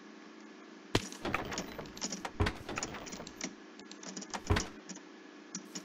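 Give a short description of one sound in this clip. Wooden blocks knock and crack as they are broken.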